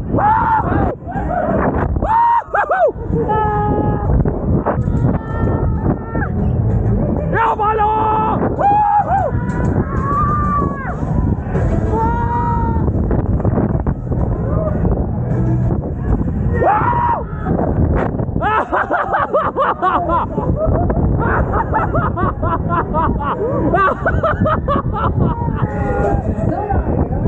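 A young man screams and whoops close by.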